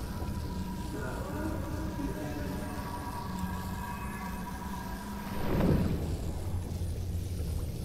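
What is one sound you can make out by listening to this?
Air bubbles rise and gurgle underwater.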